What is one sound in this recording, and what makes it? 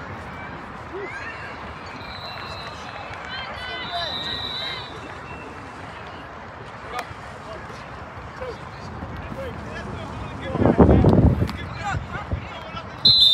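Young players shout and call out across an open field outdoors.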